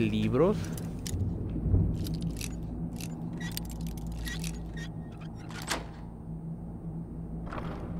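Metal clicks and scrapes as a lock is picked.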